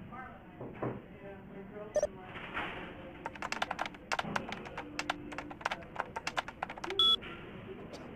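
Keys clatter as someone types on a keyboard.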